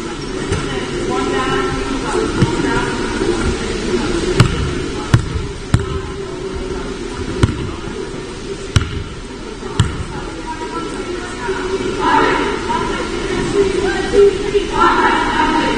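Young girls call out and cheer.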